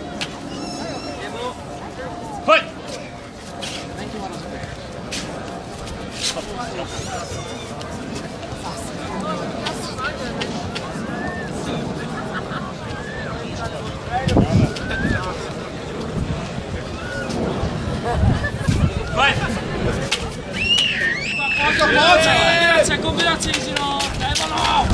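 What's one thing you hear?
An outdoor crowd chatters, cheers and shouts.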